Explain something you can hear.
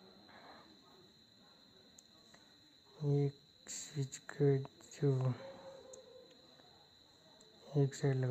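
Small plastic parts click softly as wires are handled.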